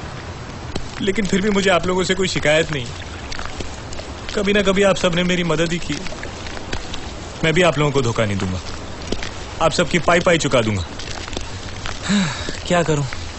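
A middle-aged man speaks loudly and with emotion, nearby.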